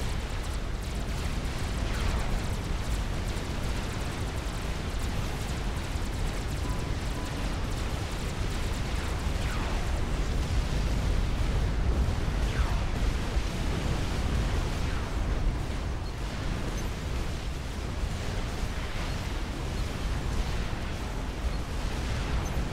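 Explosions rumble and boom without pause in a battle.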